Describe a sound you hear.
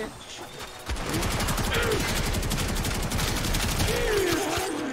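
A gun fires in a rapid, steady burst.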